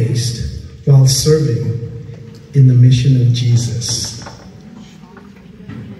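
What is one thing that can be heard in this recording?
A woman speaks loudly close by, in a large echoing hall.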